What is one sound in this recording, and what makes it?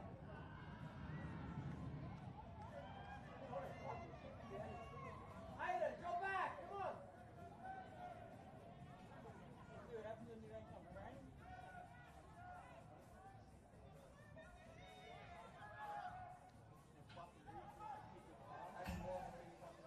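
Men shout to each other across an open field.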